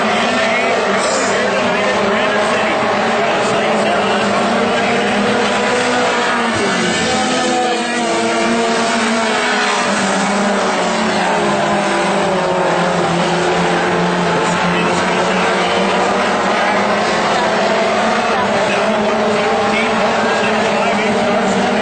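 Modified dirt track race cars roar past at full throttle in the distance.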